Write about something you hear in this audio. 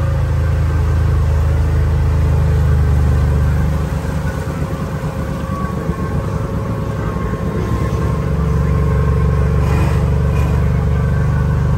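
An off-road vehicle's engine rumbles low and steady close by.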